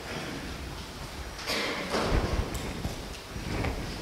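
A man speaks quietly in a large echoing room.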